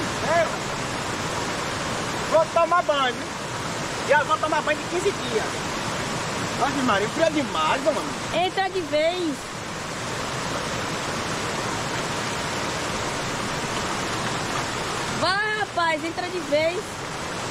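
Water rushes and splashes steadily over rocks.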